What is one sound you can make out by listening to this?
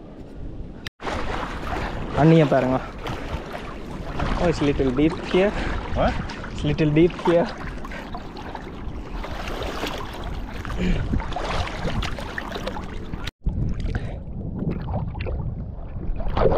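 Shallow water laps and splashes close by.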